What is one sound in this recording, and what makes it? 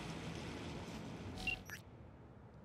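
Rain patters steadily on a wet street.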